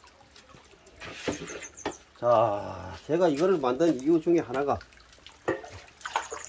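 Water trickles from a pipe into a metal basin.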